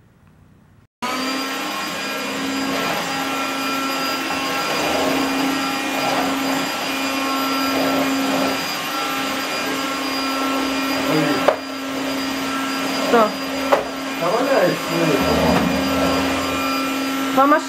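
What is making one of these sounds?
A vacuum cleaner whirs loudly and steadily close by.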